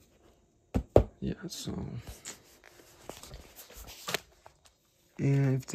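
Cardboard boxes knock and rustle as a hand moves them.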